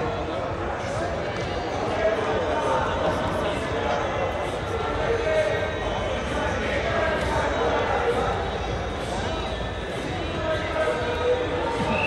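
Wrestlers' feet shuffle and thud on a mat.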